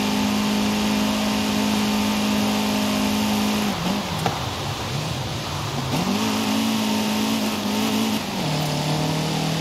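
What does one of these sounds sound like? A car engine drones at high revs, drops as the car slows, then climbs again.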